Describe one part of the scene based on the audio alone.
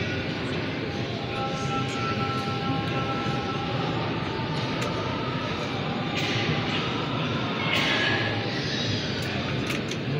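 A man's voice chants through loudspeakers.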